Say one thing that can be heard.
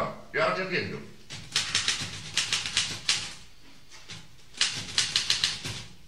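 Typewriter keys clack rapidly.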